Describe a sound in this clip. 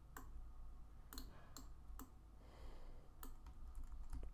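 Footsteps tap lightly on a hard floor.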